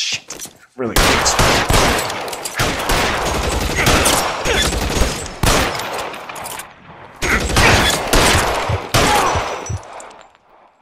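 Gunshots fire in rapid bursts and echo.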